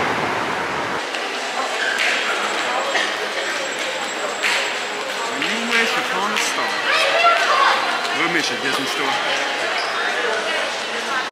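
People chatter in the background of a large echoing indoor space.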